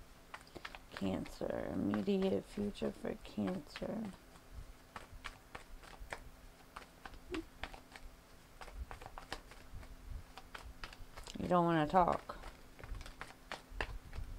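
Playing cards riffle and flick softly as they are shuffled by hand.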